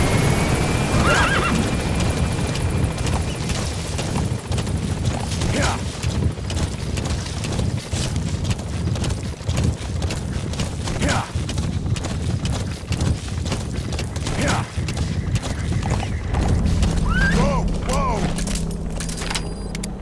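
Horse hooves pound rapidly over dry ground.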